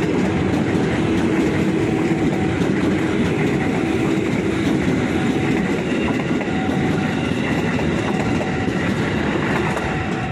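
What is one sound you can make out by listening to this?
Train motors whine steadily as the carriages pass.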